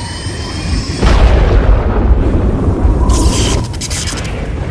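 A fiery explosion bursts with a deep roar.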